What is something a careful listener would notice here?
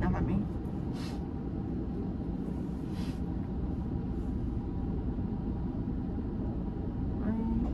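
A low steady rumble hums inside a car.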